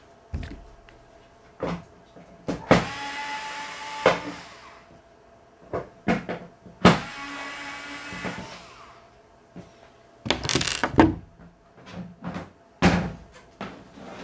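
Metal parts clink and knock against a panel.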